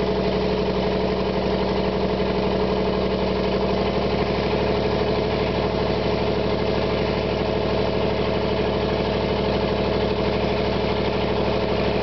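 A heavy diesel engine labours loudly and steadily close by.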